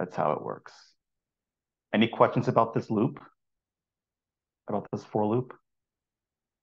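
A man speaks calmly through a microphone in an online call, in short phrases.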